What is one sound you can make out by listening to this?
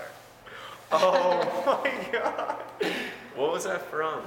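Two young men laugh loudly.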